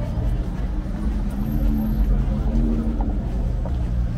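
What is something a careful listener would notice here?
Two young women talk as they walk close by.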